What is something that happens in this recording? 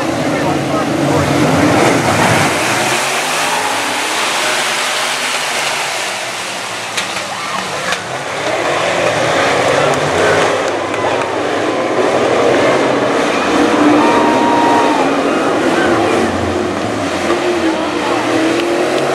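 Race car engines rev up and down.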